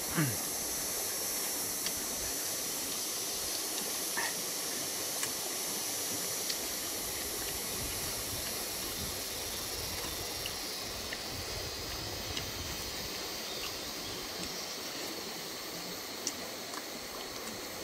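A man chews and eats noisily.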